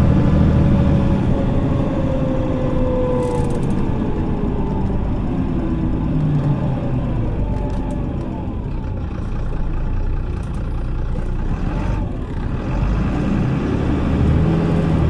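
A bus engine idles with a deep, steady rumble.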